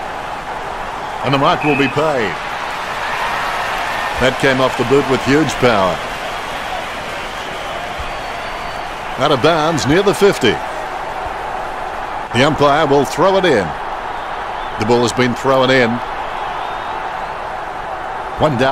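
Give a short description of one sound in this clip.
A large crowd roars steadily in a big stadium.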